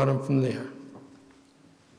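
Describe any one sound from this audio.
An older man speaks calmly into a microphone in an echoing hall.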